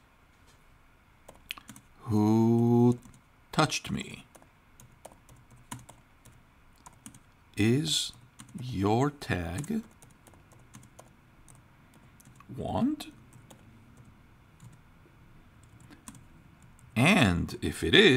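Keys clack softly on a keyboard.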